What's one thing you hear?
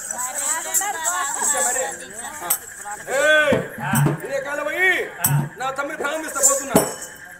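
Men sing loudly through a microphone.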